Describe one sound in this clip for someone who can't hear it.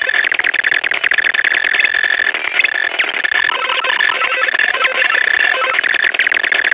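Electronic slot machine music plays with rapid chiming beeps.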